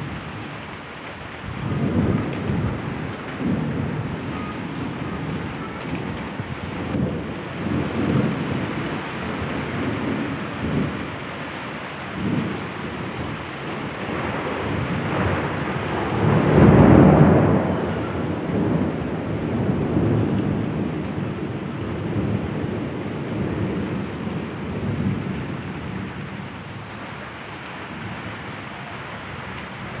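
Heavy rain pours down steadily, swelling and easing now and then.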